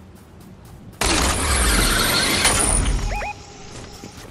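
A zipline whirs loudly while sliding.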